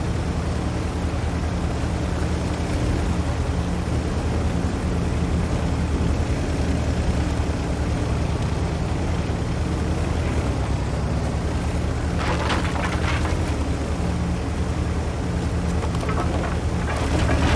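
Tank tracks clank and rattle over the ground.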